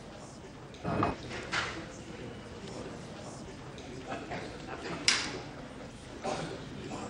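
A crowd of men murmurs and chatters close by.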